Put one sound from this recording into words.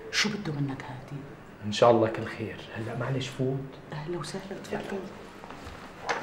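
A young man speaks with emotion close by.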